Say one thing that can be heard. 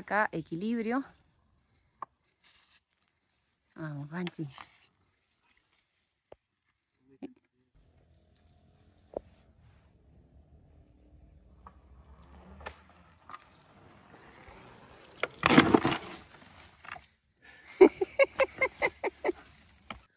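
Bicycle tyres roll over wooden planks and dirt.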